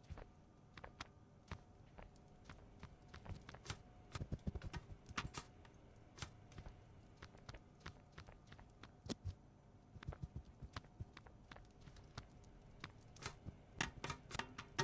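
Footsteps thud and clatter on a hard metal surface.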